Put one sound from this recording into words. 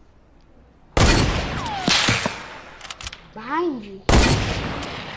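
A shotgun fires with a loud, sharp blast.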